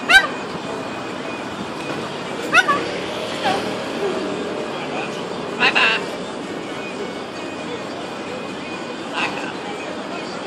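A parrot squawks loudly in short harsh calls.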